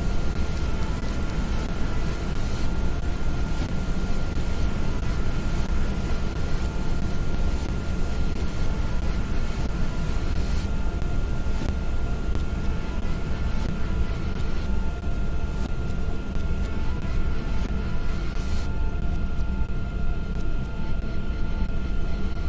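A plane engine roars steadily.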